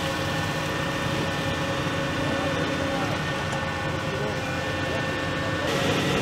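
Dirt and gravel pour from an excavator bucket.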